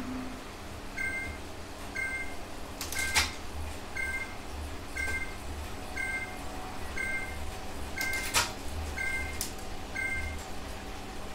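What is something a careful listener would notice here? Electronic countdown beeps sound about once a second.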